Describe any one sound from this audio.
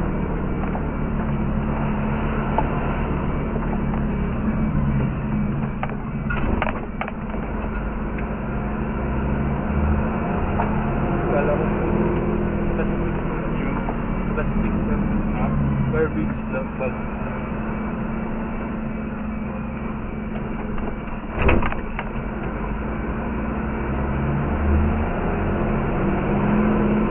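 A car engine hums steadily from inside as the car drives slowly.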